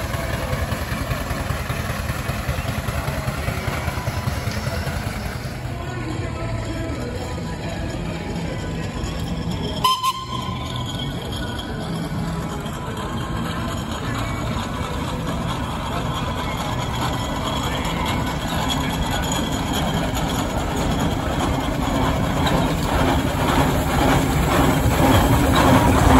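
A steam traction engine chugs steadily, growing louder as it approaches.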